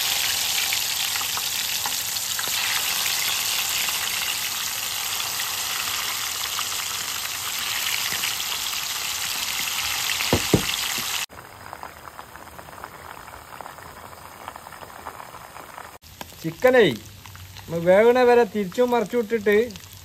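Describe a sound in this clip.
Hot oil sizzles loudly as food fries in a pan.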